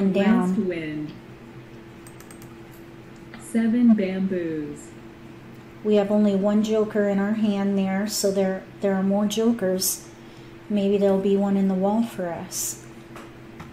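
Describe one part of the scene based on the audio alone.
A woman talks calmly into a microphone, close by.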